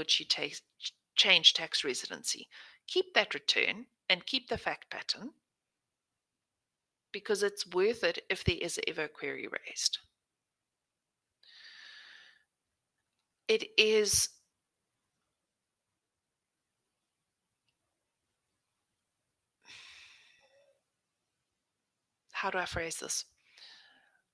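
A woman speaks calmly over an online call, in bursts with pauses.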